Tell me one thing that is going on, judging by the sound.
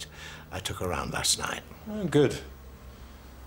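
An elderly man speaks with animation, close by.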